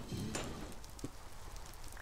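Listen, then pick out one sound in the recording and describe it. A pickaxe chips at stone blocks.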